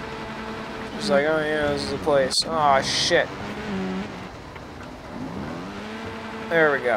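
A motorbike engine revs in sharp bursts.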